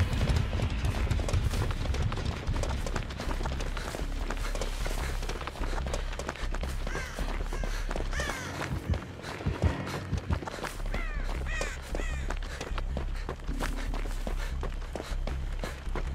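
Footsteps run quickly through tall grass.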